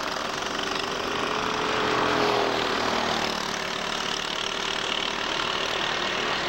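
Go-kart engines buzz loudly as karts race past.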